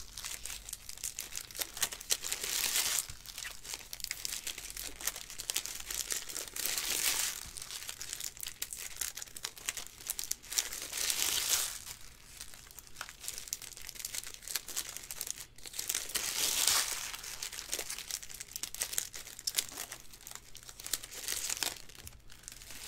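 Plastic card wrappers crinkle and rustle.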